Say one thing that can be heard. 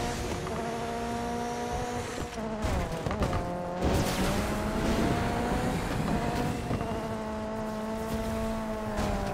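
A video game race car engine drones at high speed.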